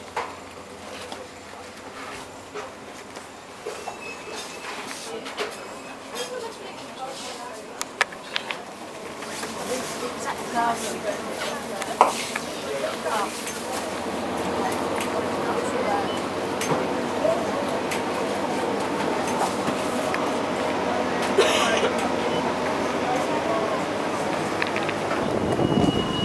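Shoppers talk quietly in the background.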